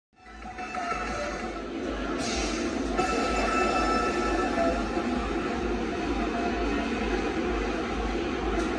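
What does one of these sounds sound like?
Upbeat electronic game music plays loudly from a machine's speakers.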